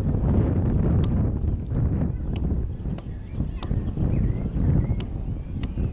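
Wind blows outdoors, buffeting the microphone with a low rumble.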